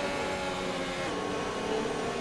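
A racing car engine shifts up a gear with a sudden drop in pitch.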